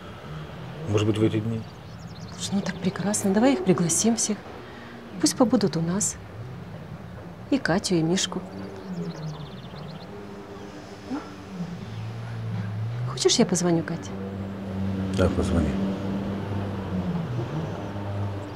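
A middle-aged woman talks calmly up close.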